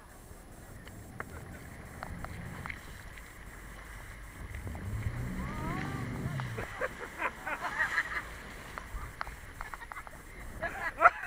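A motorboat engine rumbles and speeds up.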